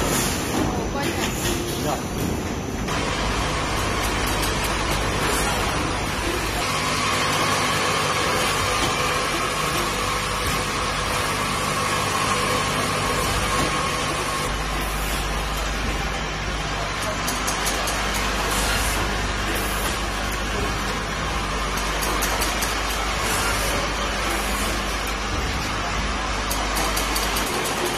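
Filling machinery hums and clatters steadily.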